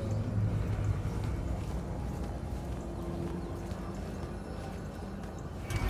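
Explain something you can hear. Footsteps climb stone steps at a steady pace.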